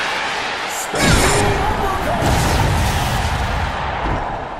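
A heavy body thumps down onto a mat.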